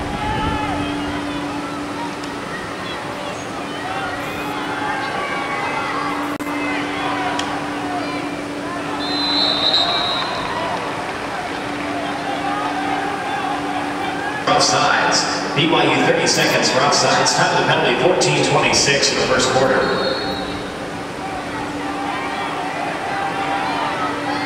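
Young men on a lacrosse team shout to each other across an open field.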